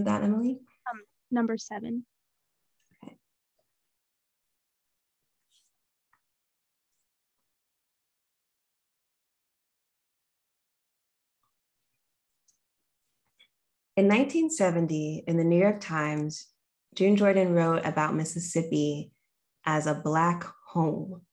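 A young woman speaks calmly and warmly into a microphone close by.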